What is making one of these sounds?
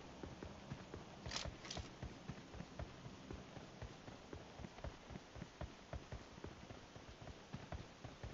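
Footsteps thud quickly and evenly over dry ground.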